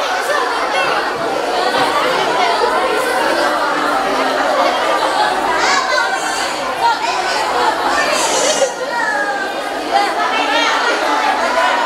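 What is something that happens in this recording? Several teenage girls talk and chatter close by.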